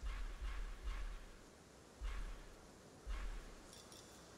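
Soft interface clicks tap in quick succession.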